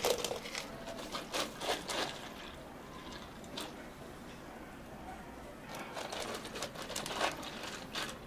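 Tea pours and splashes over ice.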